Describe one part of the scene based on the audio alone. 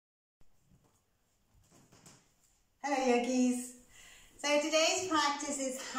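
Bare feet pad softly on a wooden floor.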